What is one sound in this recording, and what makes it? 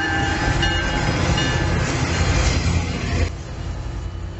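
Diesel locomotives rumble loudly as they pass close by.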